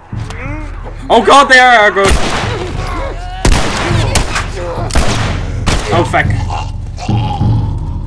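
Gunshots bang sharply in quick succession.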